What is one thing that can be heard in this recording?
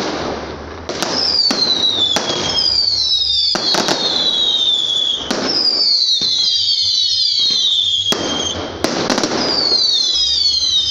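Firework rockets whistle shrilly as they fly.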